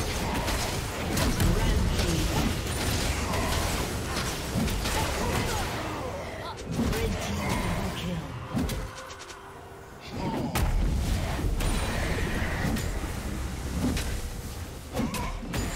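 Spell effects burst and clash in a video game fight.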